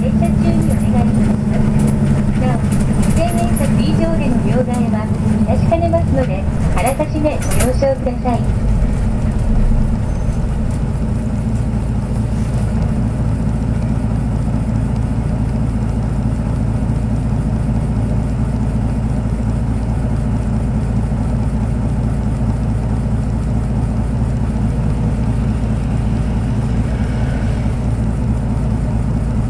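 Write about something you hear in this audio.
A vehicle engine rumbles low and steadily from close by.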